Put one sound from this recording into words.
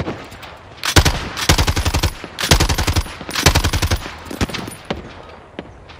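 Rapid bursts of automatic gunfire ring out close by.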